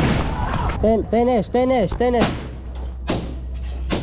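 Rifles fire sharp shots.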